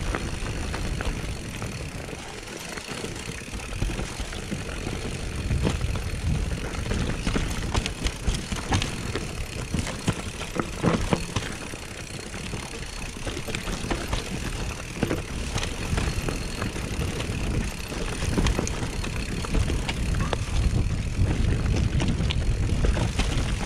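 Wind rumbles steadily past the rider.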